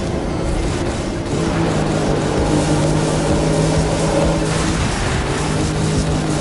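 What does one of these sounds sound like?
A car engine roars at high revs as a race car speeds along.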